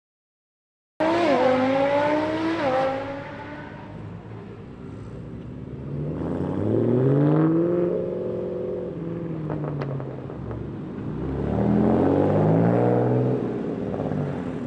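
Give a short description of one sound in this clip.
A car engine revs loudly and rises in pitch as cars pull away one after another.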